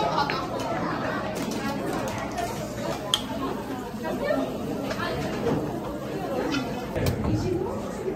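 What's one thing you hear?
A crowd of people chatters in a busy room.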